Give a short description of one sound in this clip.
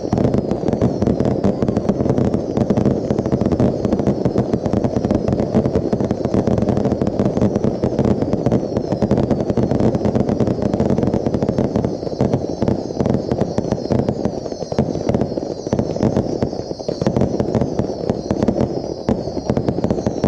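Fireworks bang and crackle rapidly overhead in a continuous barrage.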